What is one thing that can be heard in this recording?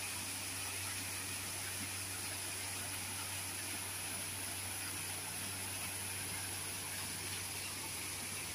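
Water trickles and splashes steadily into a pond.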